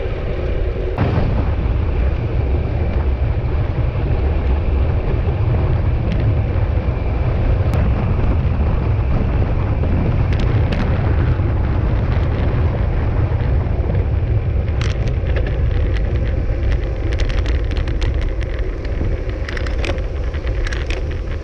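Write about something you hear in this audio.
A bicycle rattles and clicks over bumps in the road.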